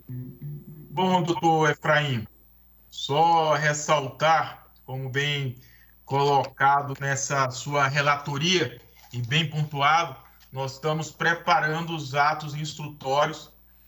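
A young man speaks steadily over an online call.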